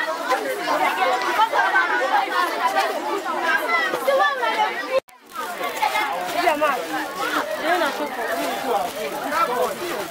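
Many children chatter and call out loudly close by.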